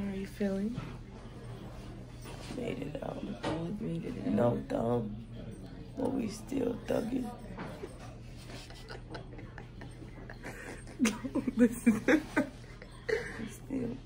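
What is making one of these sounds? A young woman talks close by, casually.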